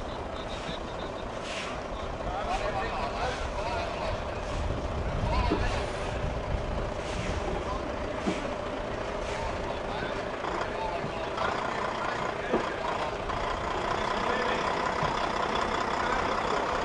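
A truck's diesel engine rumbles steadily close by.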